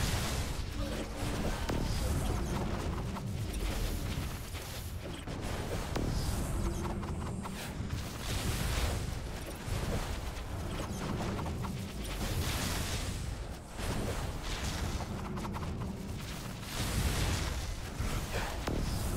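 Magical blasts boom and thud repeatedly.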